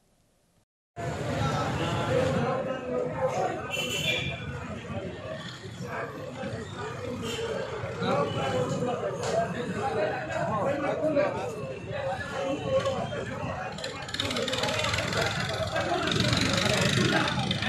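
A crowd of men chatter and call out outdoors.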